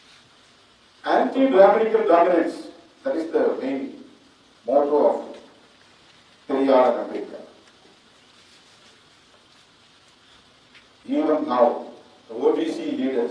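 A middle-aged man speaks deliberately into a microphone, with pauses between phrases.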